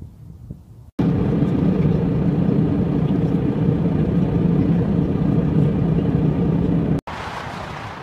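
A steady engine drones loudly inside an airplane cabin.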